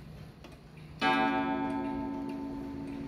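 A clock chimes once with a ringing tone that slowly fades.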